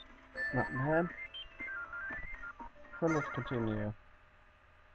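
A video game plays short electronic beeping tones.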